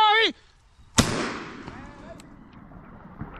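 A shotgun fires once with a loud bang that echoes.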